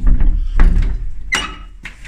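A door handle clicks.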